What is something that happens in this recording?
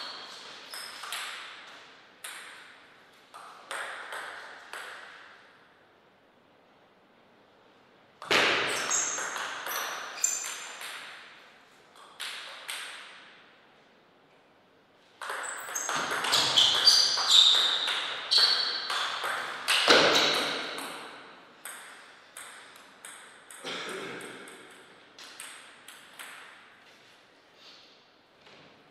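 A table tennis ball clicks sharply off paddles and a table in quick rallies.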